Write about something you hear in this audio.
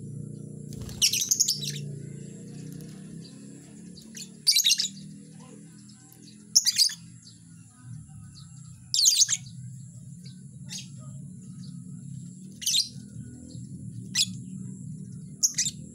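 Lovebirds chirp in short, shrill bursts.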